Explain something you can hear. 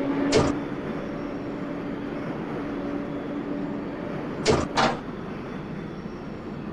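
A subway train rumbles steadily through a tunnel.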